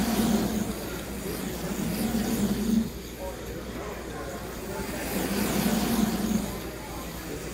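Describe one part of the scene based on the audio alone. Slot cars whine as they race past on a track.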